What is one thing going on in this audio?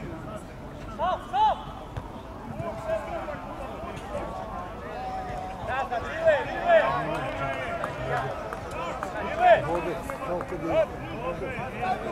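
Young men shout to each other from a distance outdoors.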